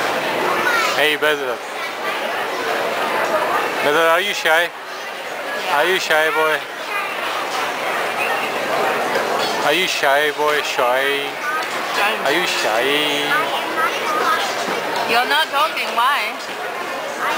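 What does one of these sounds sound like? A young child talks and calls out nearby.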